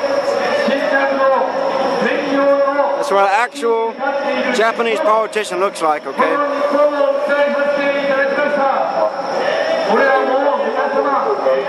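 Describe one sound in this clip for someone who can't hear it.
A woman speaks loudly through loudspeakers outdoors.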